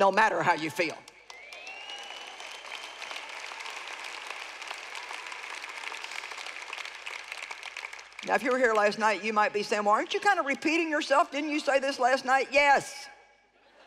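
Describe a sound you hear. A woman speaks into a microphone with animation in a large hall.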